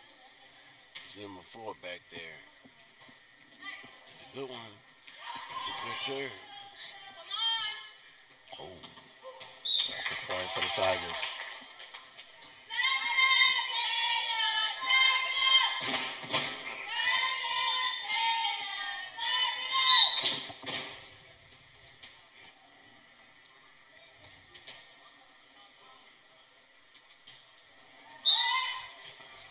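Young girls shout and cheer in a large echoing gym.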